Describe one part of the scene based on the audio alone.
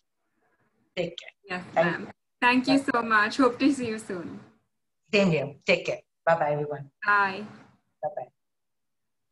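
A young woman talks cheerfully over an online call.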